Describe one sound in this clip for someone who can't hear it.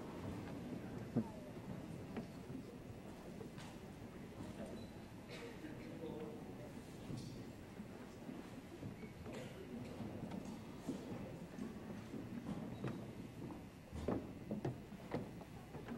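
A school band plays in a large echoing hall.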